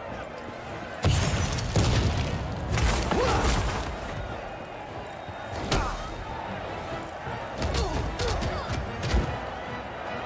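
Explosions and magic blasts burst in a game.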